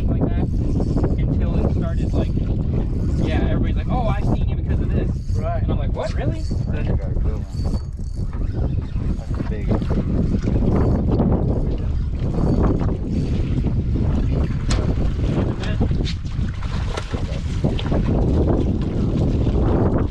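Men talk with animation, close by, outdoors in wind.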